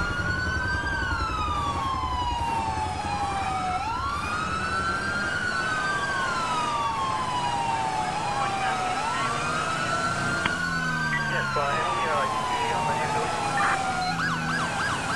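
A police siren wails in long rising and falling sweeps.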